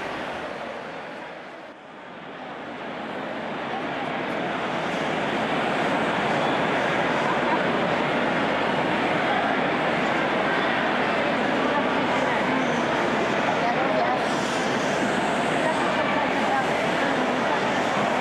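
A large crowd murmurs and chatters loudly, echoing in a large hall.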